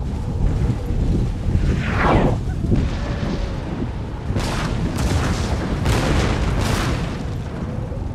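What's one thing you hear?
Many soldiers tramp steadily over snowy ground.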